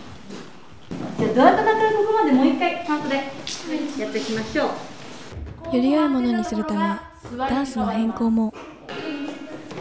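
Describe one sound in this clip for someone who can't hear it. Young women sing together in a bright, lively chorus.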